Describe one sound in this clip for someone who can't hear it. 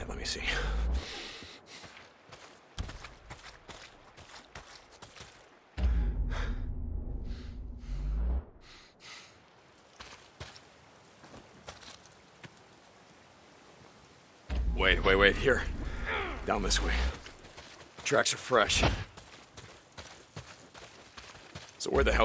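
Footsteps run through grass and brush.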